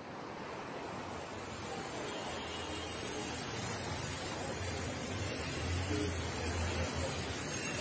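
Bicycle rickshaws splash through floodwater on a street.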